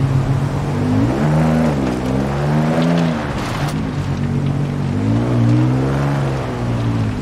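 A sports car engine revs up and down in short bursts.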